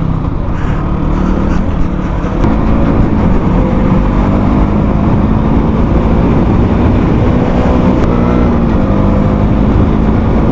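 A motorcycle engine hums steadily as the rider cruises along.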